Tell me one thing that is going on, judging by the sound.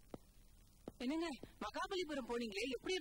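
A woman speaks with strong emotion close by.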